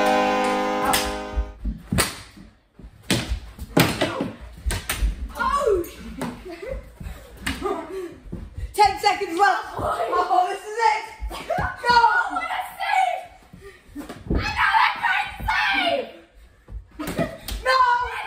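A hockey stick slaps a ball on a carpeted floor.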